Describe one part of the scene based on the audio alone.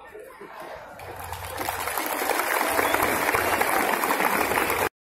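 A large crowd outdoors claps and cheers, growing louder.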